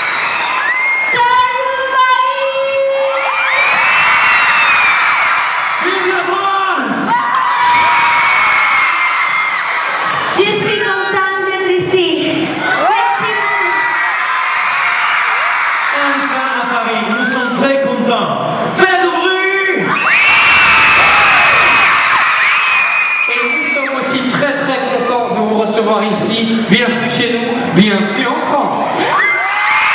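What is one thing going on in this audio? A large crowd screams and cheers loudly in a big echoing hall.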